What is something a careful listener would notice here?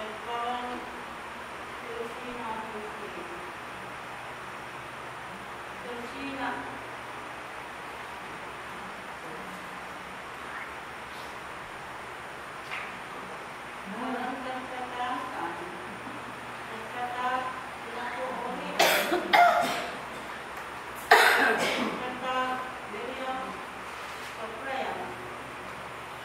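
A middle-aged woman reads aloud from a book in a slow, steady voice, heard from across a room.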